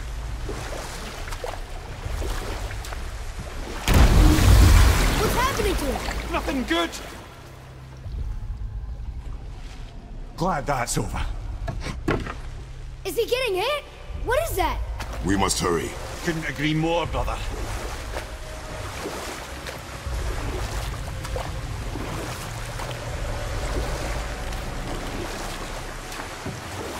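Oars splash steadily in water as a boat is rowed.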